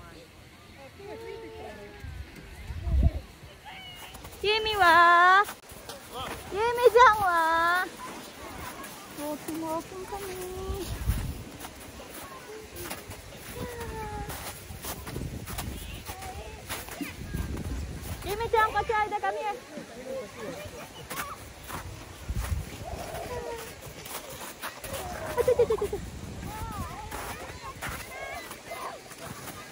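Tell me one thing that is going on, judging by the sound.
A young woman talks close by in a cheerful, sing-song voice.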